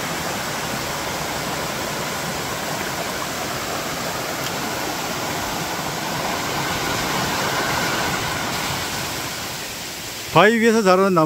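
A stream splashes and rushes steadily over rocks.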